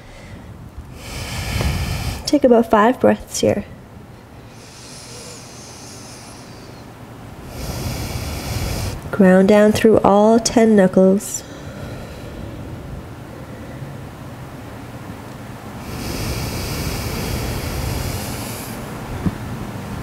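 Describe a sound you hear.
A woman breathes out slowly and deeply.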